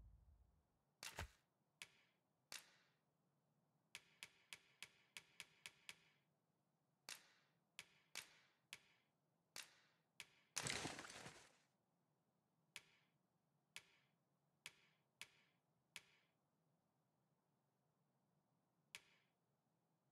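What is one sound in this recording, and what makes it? A game menu makes short clicking blips as the cursor moves between items.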